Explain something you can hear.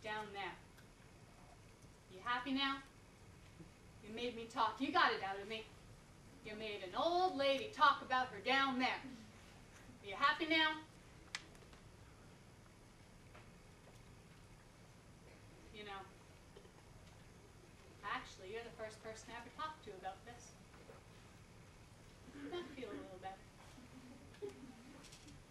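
A woman speaks slowly and expressively, with long pauses.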